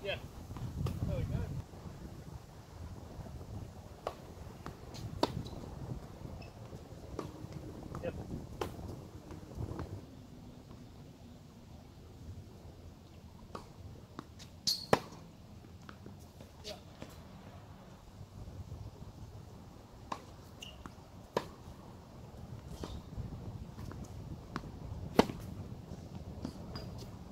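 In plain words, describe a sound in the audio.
Tennis balls bounce on a hard court.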